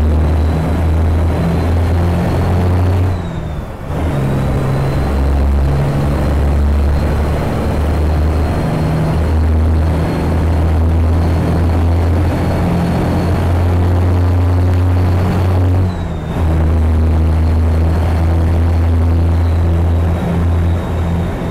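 A diesel cabover semi-truck engine drones while cruising on a highway.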